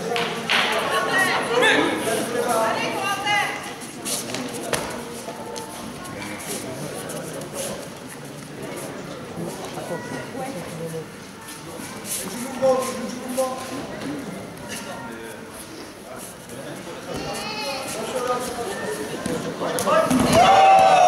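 Spectators in a large echoing hall call out and talk.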